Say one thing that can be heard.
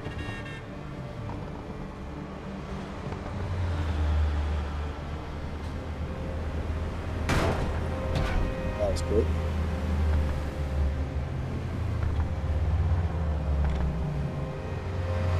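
A car engine drones at highway speed.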